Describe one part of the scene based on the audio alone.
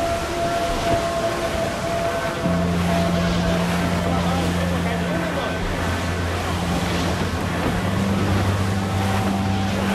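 Waves wash and splash against a wooden ship's hull.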